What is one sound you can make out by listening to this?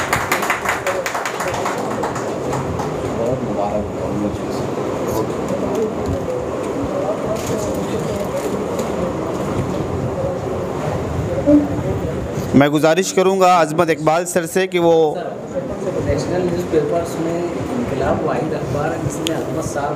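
A man speaks steadily through a microphone and loudspeaker in an echoing hall.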